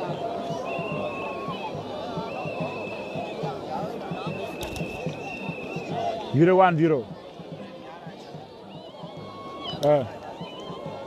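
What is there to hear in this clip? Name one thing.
A large crowd chatters and cheers outdoors at a distance.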